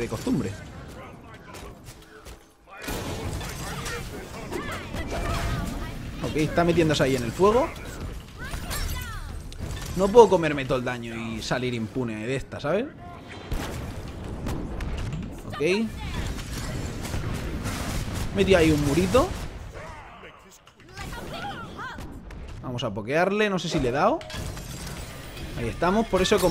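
Game sound effects whoosh and blast with fire attacks.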